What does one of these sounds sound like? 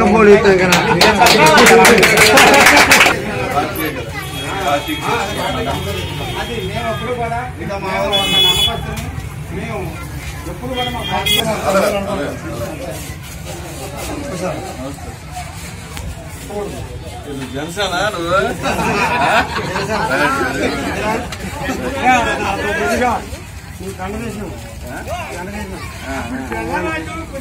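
Several men talk over one another in a crowd outdoors.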